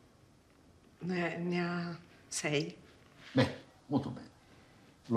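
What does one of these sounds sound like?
A young boy speaks quietly.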